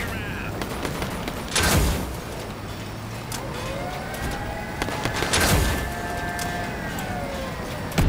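A heavy armoured combat vehicle's engine rumbles as it drives.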